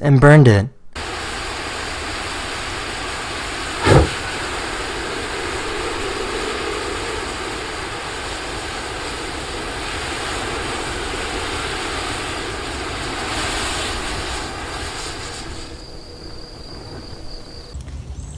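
A fire roars steadily.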